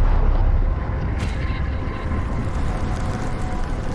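A heavy object crashes into the ground with a loud thud.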